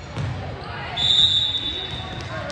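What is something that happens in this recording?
A referee's whistle blows one short sharp blast.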